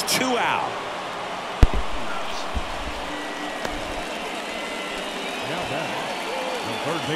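A large crowd murmurs steadily in a stadium.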